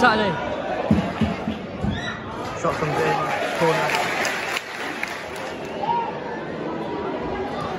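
A large stadium crowd chatters and murmurs all around.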